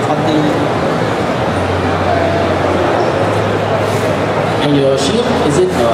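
A young woman speaks into a microphone through loudspeakers.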